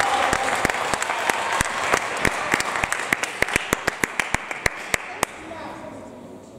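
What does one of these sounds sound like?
A table tennis ball clicks rapidly back and forth off paddles and the table in an echoing hall.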